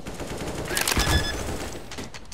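A device beeps as keys are pressed.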